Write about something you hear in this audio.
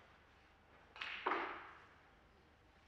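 Snooker balls click softly on a table.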